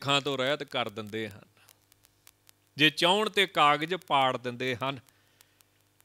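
A man speaks calmly into a microphone, close and clear.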